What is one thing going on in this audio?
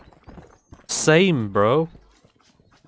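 A horse whinnies loudly close by.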